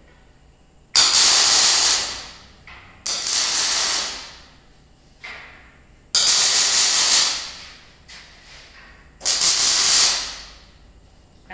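An arc welder crackles and hisses in short bursts on steel.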